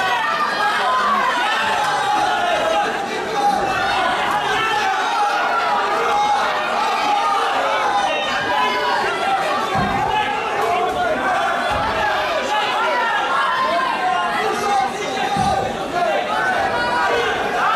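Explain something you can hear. Punches and kicks thud against a fighter's body.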